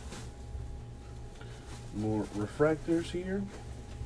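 A foil pack crinkles as it is torn open.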